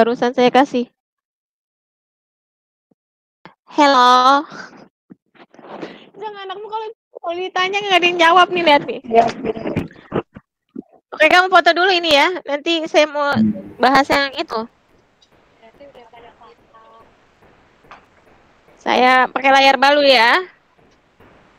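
A woman speaks with animation over an online call, in bursts with pauses.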